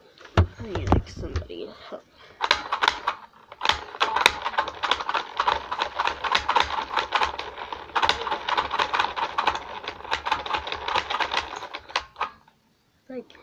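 Plastic markers click and rattle against a plastic toy.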